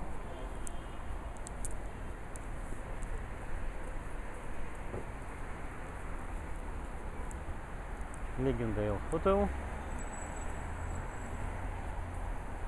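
City traffic rumbles steadily in the background.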